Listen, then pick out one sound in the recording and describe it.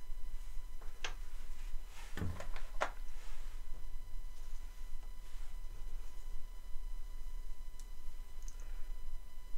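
Small wooden pieces click and tap softly against a board.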